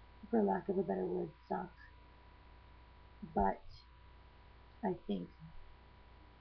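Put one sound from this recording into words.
A young woman speaks calmly and close to a microphone, in short phrases with pauses.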